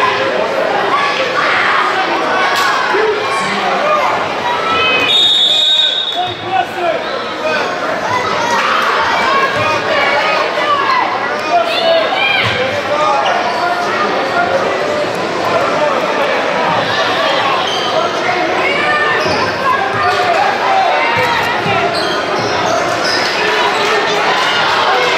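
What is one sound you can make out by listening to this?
A large crowd chatters and cheers in an echoing gym.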